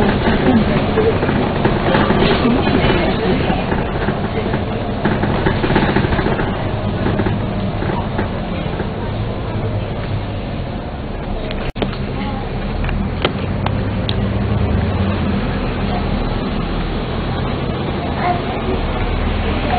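A bus engine rumbles steadily while driving along a city street.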